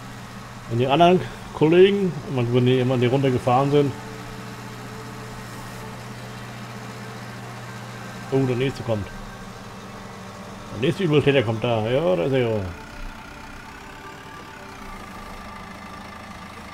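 A loader's engine hums steadily.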